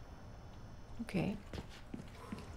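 A young woman speaks briefly and quietly into a microphone.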